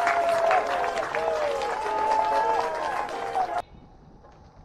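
A group of young men cheer and shout excitedly.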